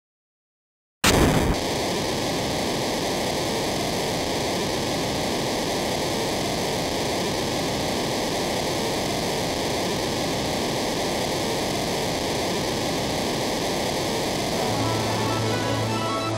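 A heavy machine rumbles and hums steadily.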